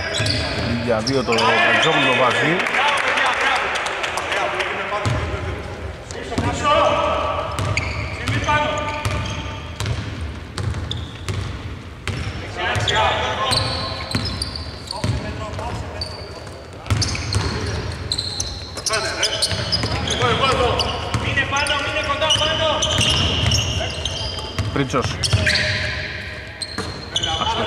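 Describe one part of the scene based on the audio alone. A basketball bounces on a hardwood court in a large echoing hall.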